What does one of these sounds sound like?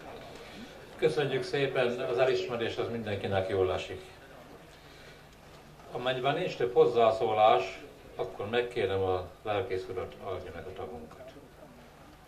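A man speaks calmly into a microphone over a loudspeaker, in an echoing tent.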